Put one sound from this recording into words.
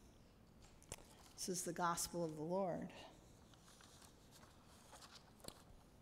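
Paper pages rustle as they turn.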